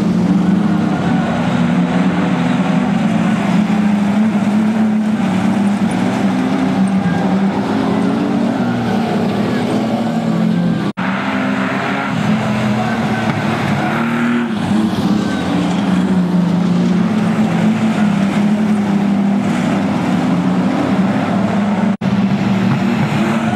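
Race car engines roar and rev nearby.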